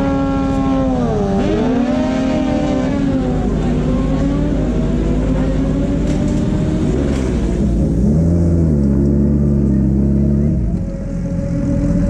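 A motorcycle engine revs up and drops back.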